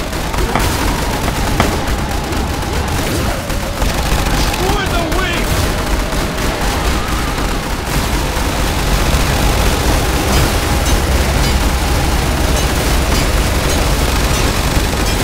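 Game turrets fire in a rapid, constant clatter of shots and blasts.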